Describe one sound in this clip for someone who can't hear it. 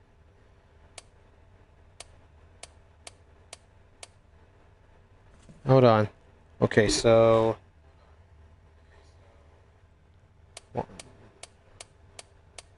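A combination dial clicks as it turns.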